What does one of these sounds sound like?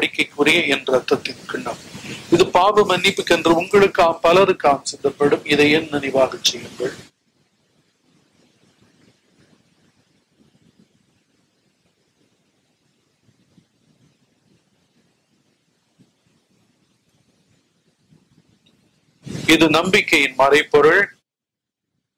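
An elderly man speaks calmly into a microphone in a reverberant hall.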